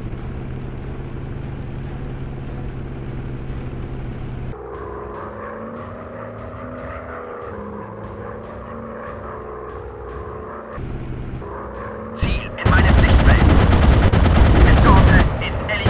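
A biplane engine drones steadily.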